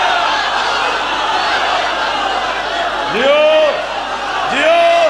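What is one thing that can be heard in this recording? A man chants loudly through a microphone.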